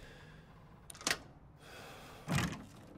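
A door lock clicks as it is unlocked.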